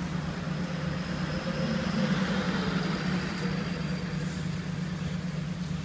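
A van drives past close by.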